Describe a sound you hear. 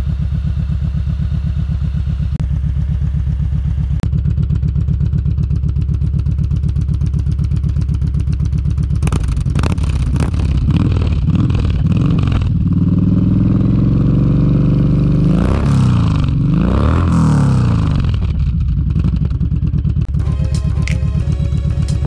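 A motorcycle engine idles with a deep, steady, pulsing rumble up close.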